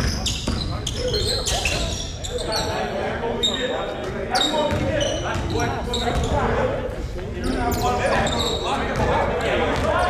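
Young men call out to each other across an echoing gym.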